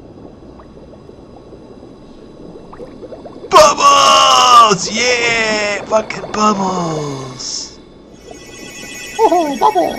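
Bubbles gurgle and pop underwater.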